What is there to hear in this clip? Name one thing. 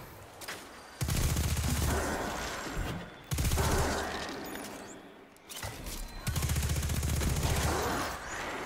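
An automatic gun fires rapid bursts of shots.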